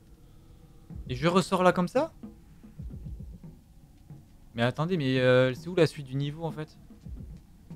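A man speaks into a close microphone in short bursts.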